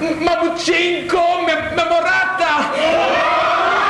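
A young boy sings on a stage.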